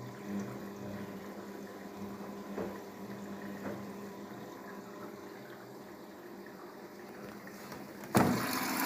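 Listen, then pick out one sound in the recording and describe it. A washing machine hums steadily as its drum turns and water sloshes.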